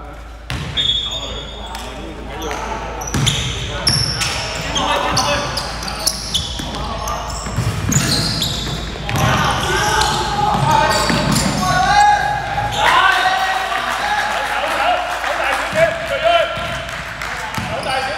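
A basketball bounces on a hard floor with a thud.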